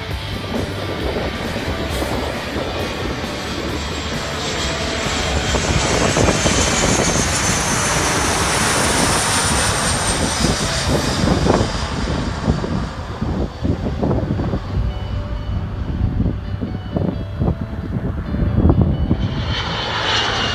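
A jet airliner roars loudly as it passes low overhead.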